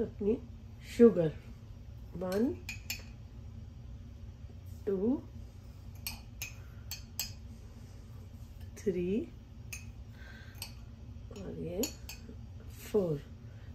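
A whisk taps and clicks against a bowl.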